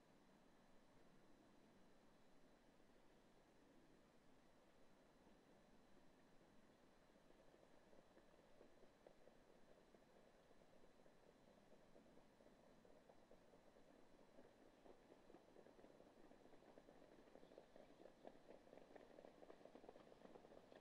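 Horses' hooves thud on a dirt track as trotters race past at a distance.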